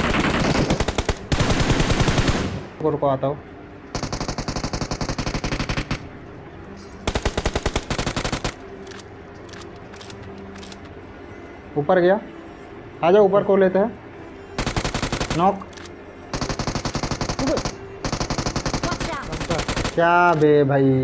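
Rapid gunfire bursts from an automatic rifle, close up.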